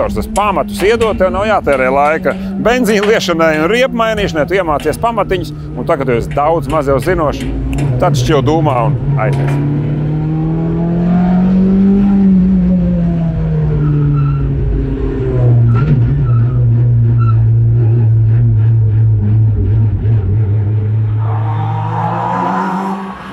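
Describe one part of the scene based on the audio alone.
A rally car engine drones and revs steadily from inside the cabin.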